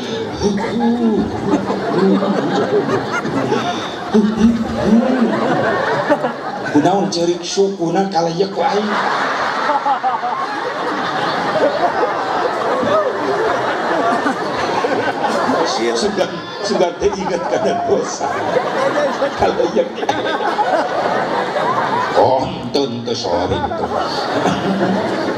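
A middle-aged man preaches with animation into a microphone over loudspeakers.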